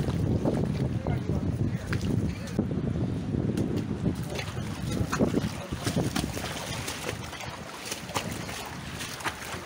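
Shallow water trickles and burbles over stones.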